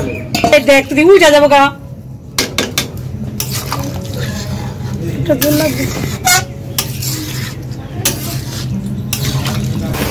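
A metal ladle scrapes and clinks against a pan while stirring a thick stew.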